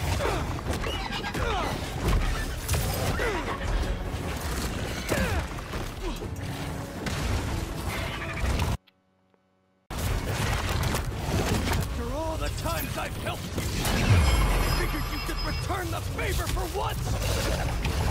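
A huge beast roars and snarls.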